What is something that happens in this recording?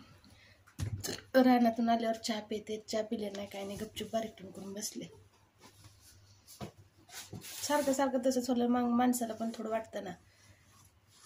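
A woman talks calmly close to the microphone.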